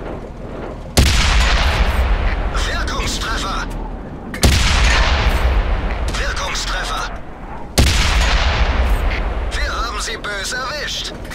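A tank cannon fires with loud, sudden booms that ring out.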